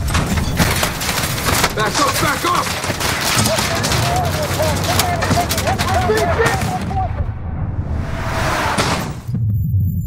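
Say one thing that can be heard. Bullets smash into a car windshield.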